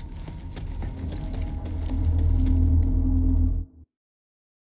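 A portal hums with a deep, swelling drone, then cuts off.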